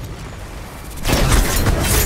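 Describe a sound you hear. A gun fires with a loud blast.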